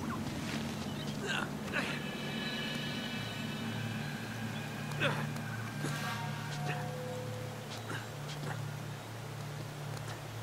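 Hands grab and scrape on rock while climbing.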